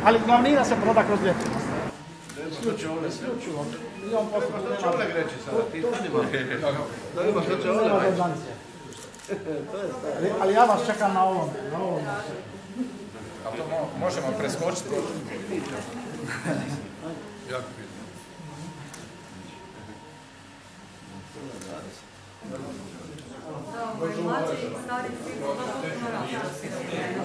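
A man speaks calmly and at length, close by.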